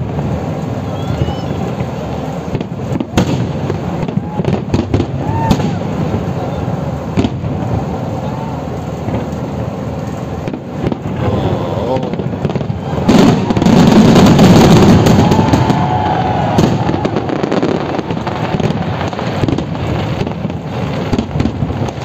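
Fireworks bang and crackle in the night sky.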